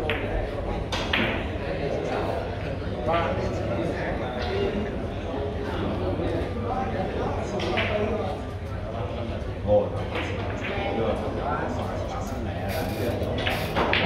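Billiard balls click against each other.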